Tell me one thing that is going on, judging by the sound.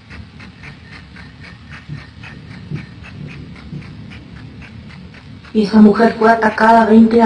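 A woman speaks softly through an online call.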